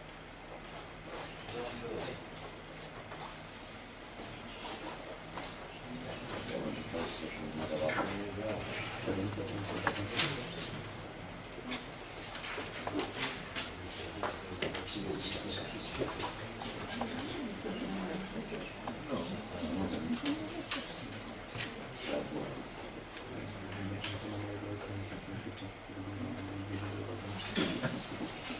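A man speaks calmly to a room, heard from a distance in a slightly echoing hall.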